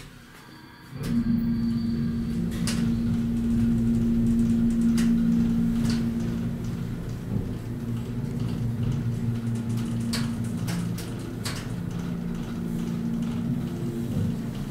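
An elevator car rattles and clicks as it moves.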